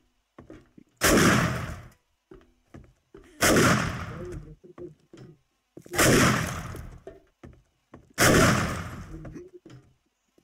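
A rifle fires single loud shots with a short echoing tail.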